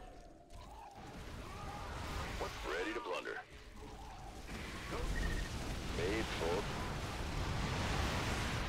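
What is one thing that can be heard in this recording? Gunfire and explosions rumble through a battle.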